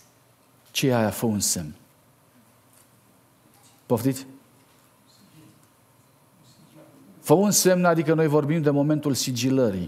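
A middle-aged man speaks with animation into a microphone, with pauses between phrases.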